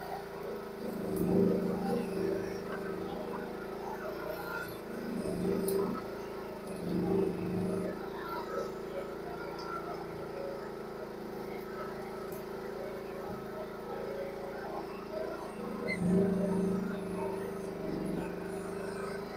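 An excavator's hydraulics strain and whine in surges as the arm works.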